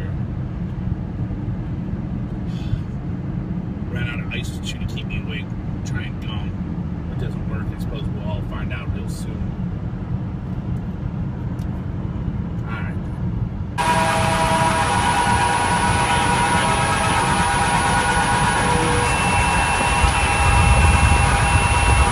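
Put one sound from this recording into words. A car engine hums and tyres rumble steadily on a road from inside the car.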